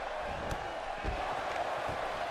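A heavy body thuds hard onto the floor.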